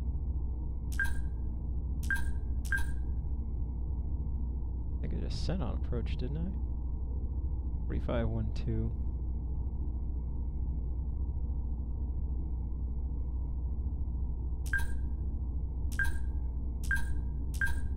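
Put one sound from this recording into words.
Computer panels give short, high beeps.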